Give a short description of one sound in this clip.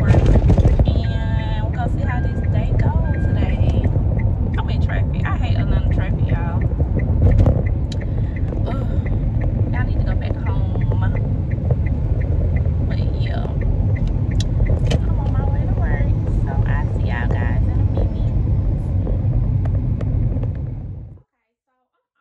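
A car's road noise rumbles low and steady.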